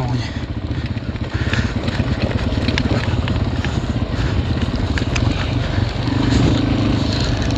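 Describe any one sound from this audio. Tyres roll and bump over grass.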